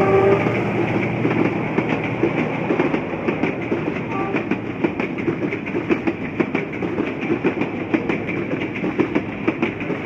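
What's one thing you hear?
Train wheels clatter rhythmically over the rail joints as the carriages pass.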